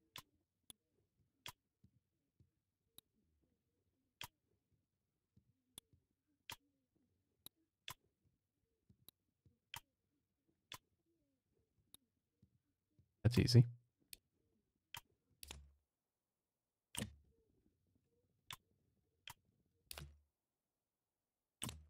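Short soft interface clicks tick now and then.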